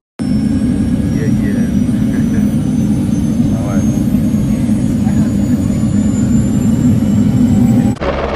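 A man talks excitedly.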